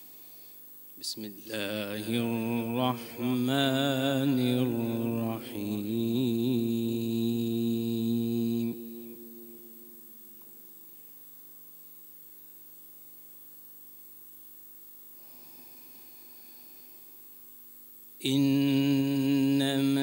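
A man chants a slow, melodic recitation into a microphone, with long pauses.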